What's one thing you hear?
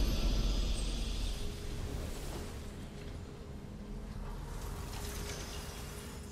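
A game's victory fanfare swells and slowly fades.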